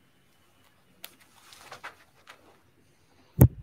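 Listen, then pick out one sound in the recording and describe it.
Clothing rustles as a man stands up.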